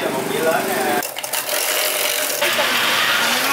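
An ice shaver grinds ice with a loud whir.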